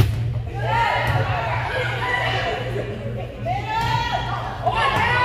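Young women shout and call out to each other in a large echoing gym.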